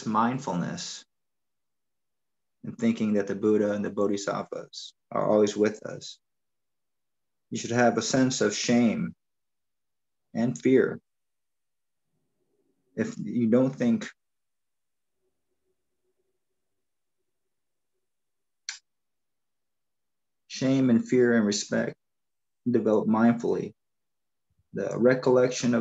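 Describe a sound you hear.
An elderly man speaks calmly through an online call, in short phrases with pauses.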